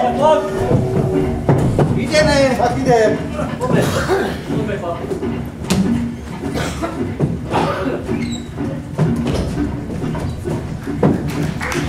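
Boots thump and shuffle on wooden boards.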